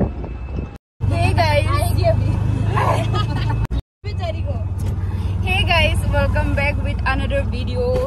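A young woman talks and laughs excitedly close by.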